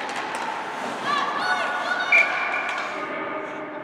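Spectators shout and cheer from the stands.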